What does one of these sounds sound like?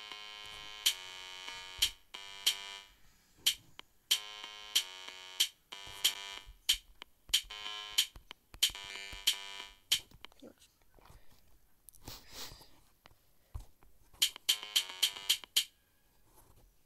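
An electronic drum beat taps steadily.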